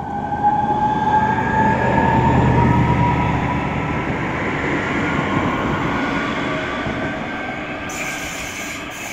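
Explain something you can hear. An electric train rumbles past on the tracks and slowly fades away.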